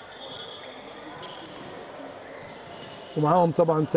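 A volleyball bounces on a hard floor.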